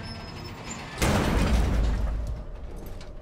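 A metal shipping container lands with a heavy thud.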